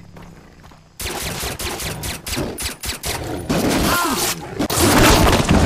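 A tiger growls and roars close by.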